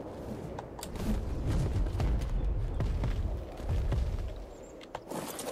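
Wind rushes past during flight.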